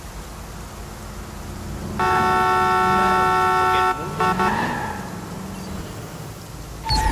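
A car engine revs and rumbles.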